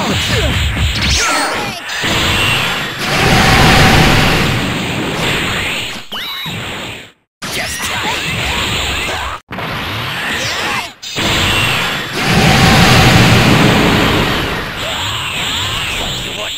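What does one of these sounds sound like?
A powerful aura hums and crackles.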